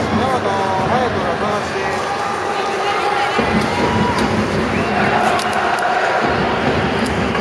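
A large stadium crowd chants and sings loudly in a big echoing space.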